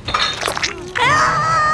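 A woman screams loudly in pain.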